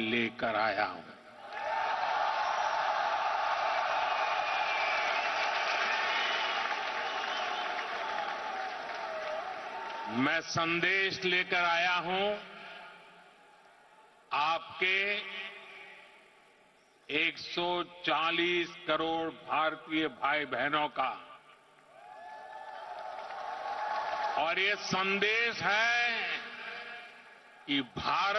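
An elderly man speaks forcefully into a microphone.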